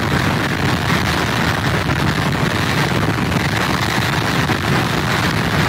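Rough surf crashes and churns against a pier.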